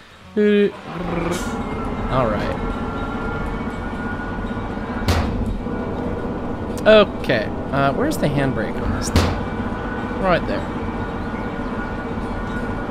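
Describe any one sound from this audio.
A diesel locomotive engine idles with a steady low rumble.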